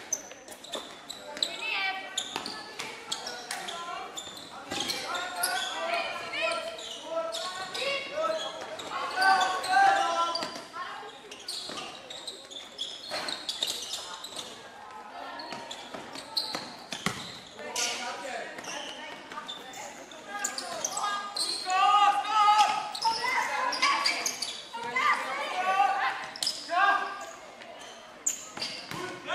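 Young girls shout and call out to each other in a large echoing hall.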